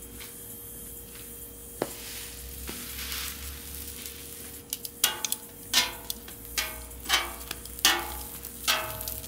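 Buns sizzle on a hot griddle.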